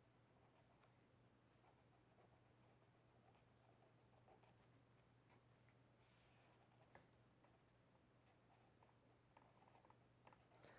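A pen scratches and taps on paper.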